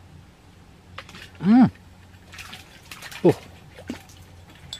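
Water splashes as a small fish thrashes at the surface.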